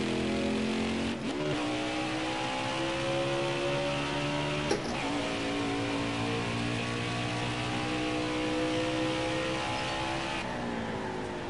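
A V8 stock car engine roars at full throttle.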